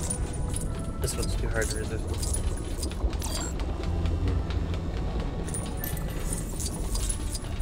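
Small coins chime and tinkle in quick bursts.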